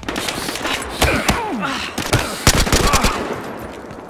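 A rifle fires several loud shots in quick bursts.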